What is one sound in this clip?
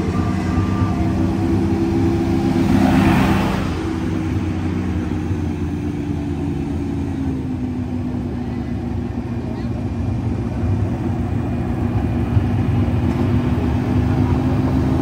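A small boat's motor hums steadily at a low, even pitch.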